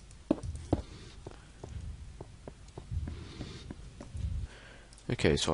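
Footsteps thud softly on stone at a steady walking pace.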